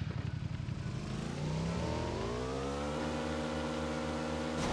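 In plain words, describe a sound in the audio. A motorcycle engine revs up and holds a high, steady drone.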